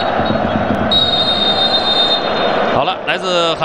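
A referee blows a long, shrill whistle blast.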